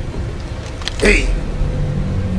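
A man shouts out sharply nearby.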